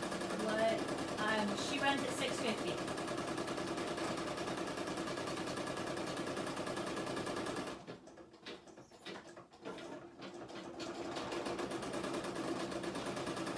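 An embroidery machine stitches with a fast, steady rattling hum.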